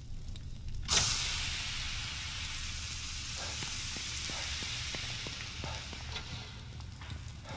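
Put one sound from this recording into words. Fire crackles and hisses nearby.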